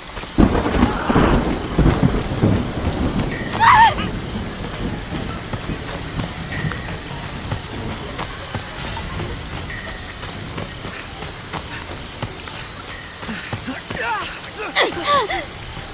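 Footsteps thud quickly on the ground as a woman runs.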